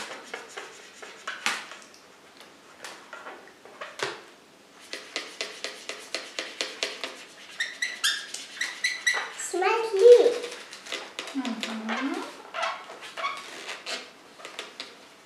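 A felt pen squeaks and scratches in short strokes on a balloon.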